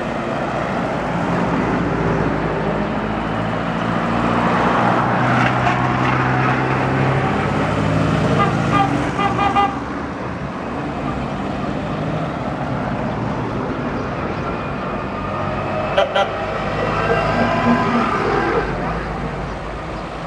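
Old cars drive past one after another with humming, rattling engines.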